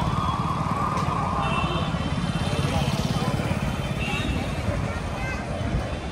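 A motor scooter drives past close by.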